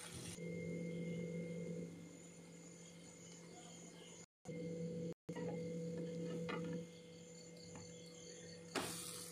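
Bread sizzles softly in a hot frying pan.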